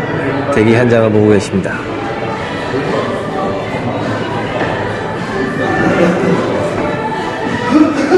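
Several young men and women chat.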